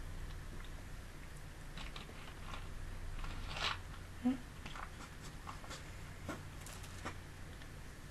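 A plastic bottle crinkles and taps close to a microphone.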